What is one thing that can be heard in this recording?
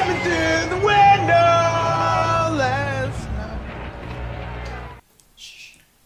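A man yells in a loud, strained voice.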